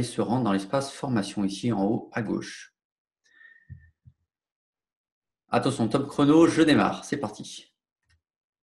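A man talks with animation into a microphone, in short bursts.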